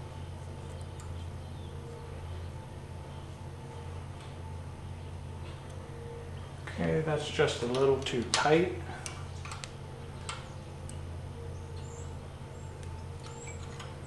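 Thin metal scrapes softly as it slides between metal parts.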